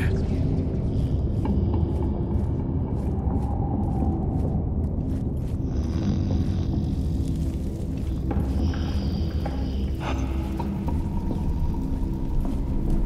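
Soft footsteps shuffle slowly over stone.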